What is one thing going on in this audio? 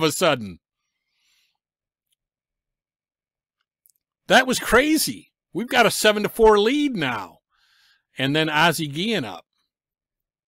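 A man talks with animation close to a microphone, in short bursts.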